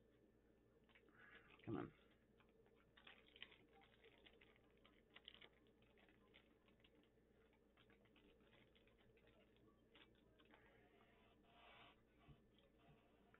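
Small plastic pieces click and rustle in a man's hands.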